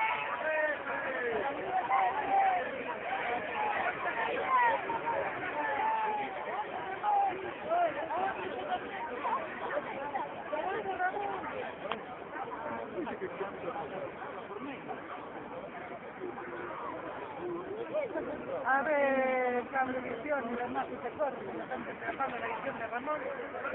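A crowd of men and women chatters and shouts close by.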